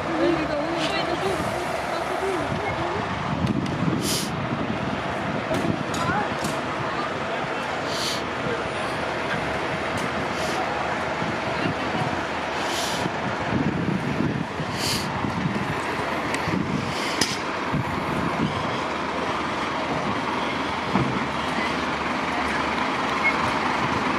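Fire engine engines idle with a steady low rumble nearby.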